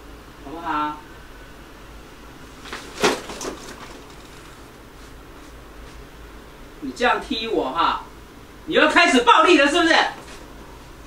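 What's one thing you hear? An elderly woman speaks sharply nearby.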